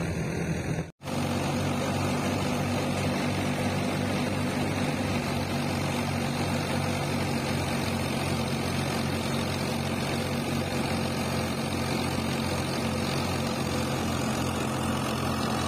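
A tractor engine runs with a steady, low, throbbing rumble.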